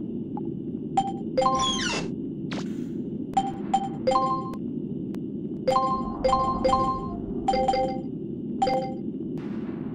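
Short electronic blips chime in quick bursts.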